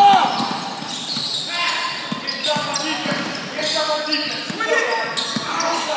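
A basketball bounces on a hardwood floor.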